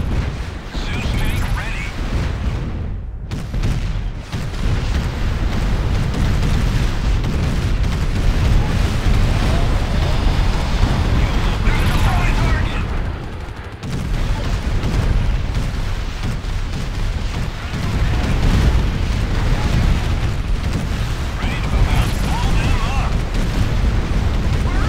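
Gunfire and explosions rumble and crackle in a loud battle.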